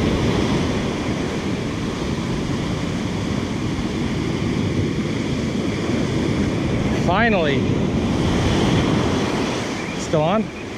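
Strong wind blows across the microphone.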